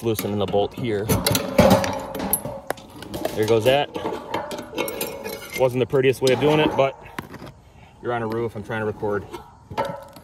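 Metal parts clunk and rattle as a heavy part is fitted onto a mount.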